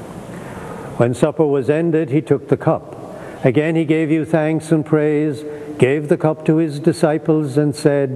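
An elderly man chants slowly in a large echoing room.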